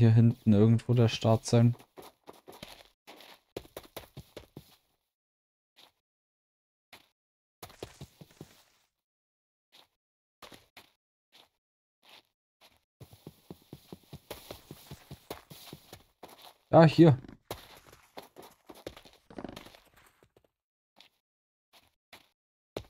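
Footsteps tap quickly on blocks as a game character runs and jumps.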